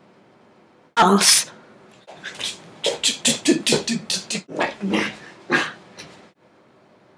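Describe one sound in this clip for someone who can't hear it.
Footsteps thud quickly on the floor nearby.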